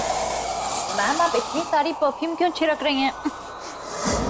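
A young woman speaks sharply nearby.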